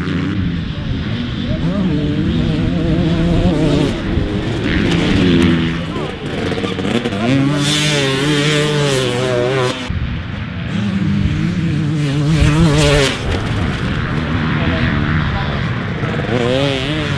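A dirt bike engine revs loudly, rising and falling in pitch.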